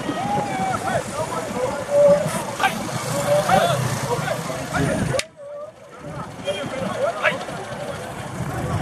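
A crowd of men and women shout and cheer nearby, outdoors.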